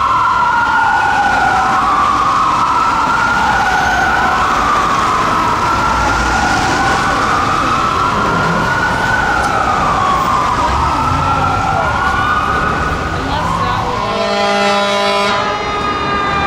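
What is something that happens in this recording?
Traffic rumbles on a city street.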